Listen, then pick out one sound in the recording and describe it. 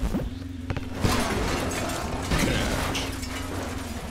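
Electronic game effects burst and crackle as objects explode.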